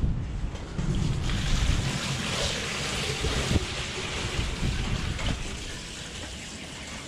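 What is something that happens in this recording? Water pours from a bucket into a container.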